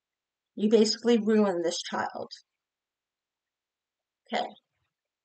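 A middle-aged woman speaks calmly into a nearby microphone.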